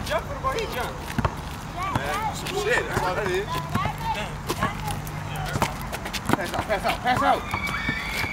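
A basketball bounces repeatedly on pavement.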